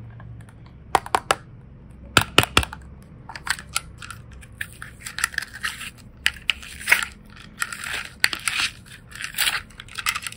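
A plastic case clicks and rattles as it is opened and handled.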